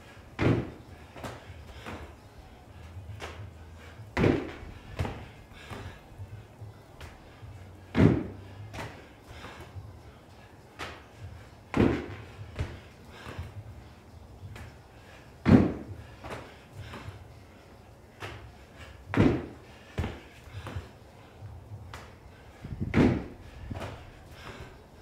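Hands slap a rubber floor as a man drops into push-ups.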